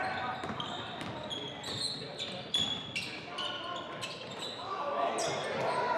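Players and spectators call out in a large echoing gym.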